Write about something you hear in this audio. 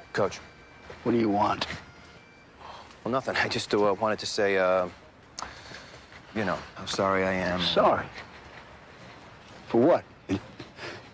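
An elderly man speaks in a low, gruff voice close by.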